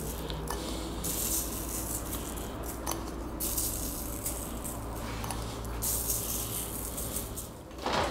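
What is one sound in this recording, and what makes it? Sugar patters lightly as fingers sprinkle it onto pastries.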